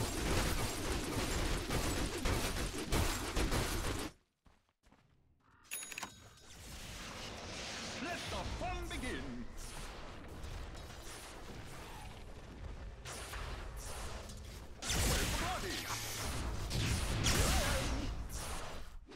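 Video game combat sounds clash and crackle with magic blasts.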